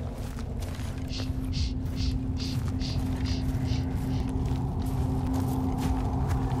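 Footsteps crunch steadily through snow and dry grass.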